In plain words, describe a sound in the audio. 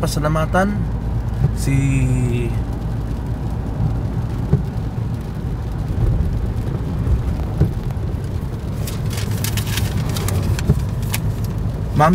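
Windshield wipers swish across the glass.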